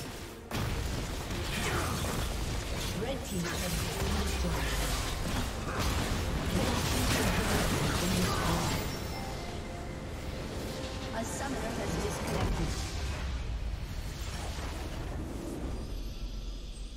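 Game battle effects clash and explode in a busy fight.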